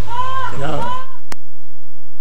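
An elderly man speaks slowly through a microphone.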